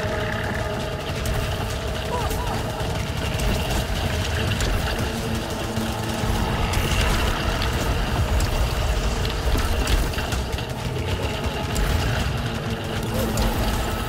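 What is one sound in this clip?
Energy blasts whoosh and boom loudly.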